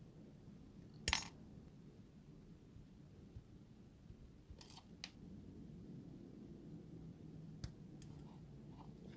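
Scissors snip through thin metal sheet with crisp clicks.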